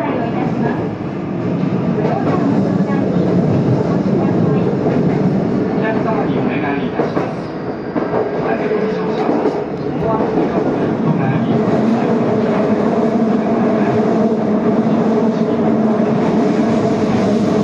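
A train rumbles steadily along the rails from inside the cab.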